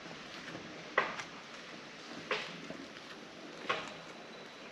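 Footsteps tap on stone steps outdoors.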